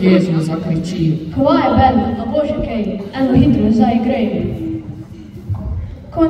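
A boy speaks into a microphone over loudspeakers in a large echoing hall.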